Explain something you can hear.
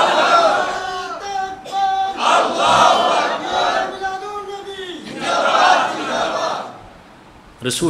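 A man sings a chant through a microphone with echo.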